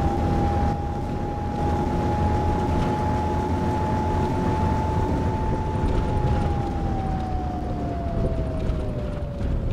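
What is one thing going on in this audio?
A bus engine hums steadily with a whining tone that slowly drops in pitch.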